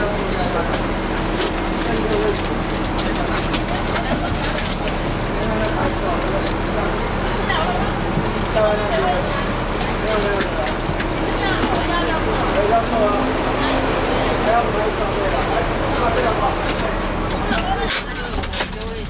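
A crowd of people chatters outside, muffled through a window.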